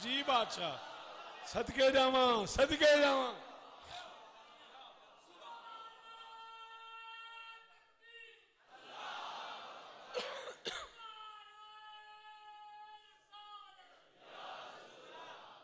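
A crowd of men chants together in response.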